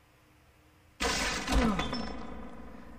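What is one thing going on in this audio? A man falls and hits the floor with a heavy thud.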